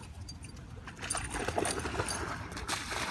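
A dog splashes into water.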